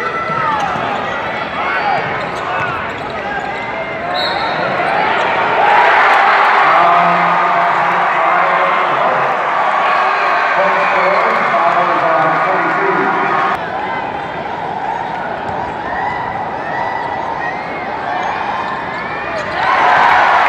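Basketball sneakers squeak on a hardwood court.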